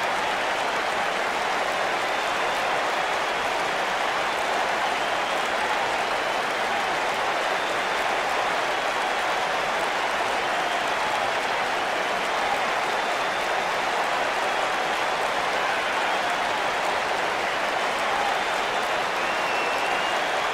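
A large crowd roars steadily in an arena.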